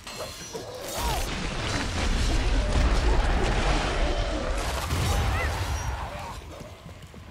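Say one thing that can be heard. A heavy explosion booms and rumbles.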